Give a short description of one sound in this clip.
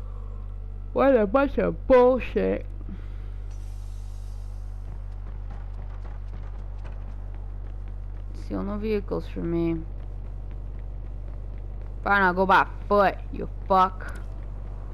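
A young woman speaks calmly into a microphone, in short bursts.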